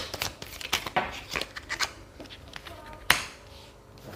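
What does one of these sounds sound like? Cards are shuffled and riffled in a woman's hands.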